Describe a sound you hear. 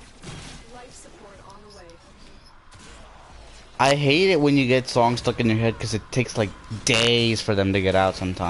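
Weapons fire and clash in a fast game battle.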